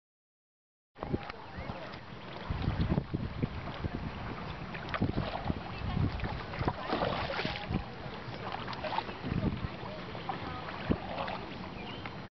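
Water laps against a small boat outdoors.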